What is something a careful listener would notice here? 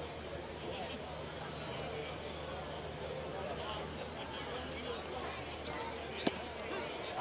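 A large stadium crowd murmurs outdoors.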